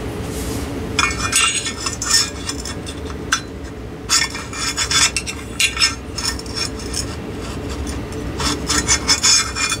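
A glass lamp shade rattles and scrapes as hands twist it.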